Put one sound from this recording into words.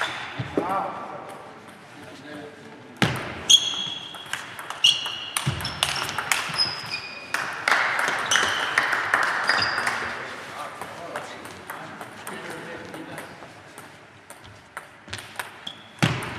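A table tennis ball clicks back and forth off paddles and the table in an echoing hall.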